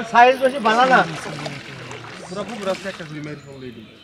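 A hooked fish thrashes and splashes in the water.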